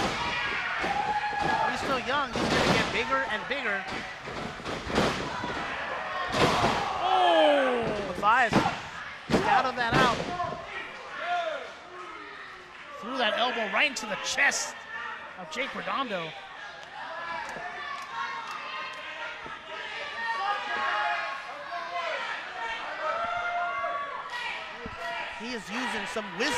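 A crowd of people shouts and cheers in a large echoing hall.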